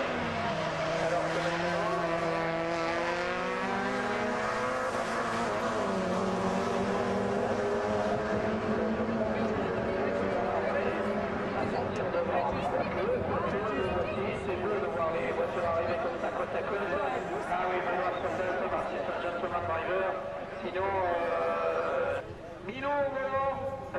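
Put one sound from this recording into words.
Racing car engines roar and rev loudly as cars speed around a track.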